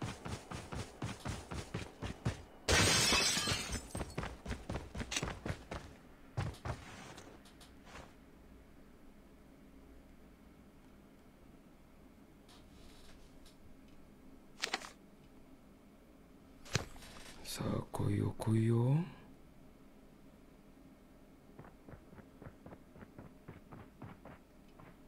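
Quick footsteps thud on hard floors.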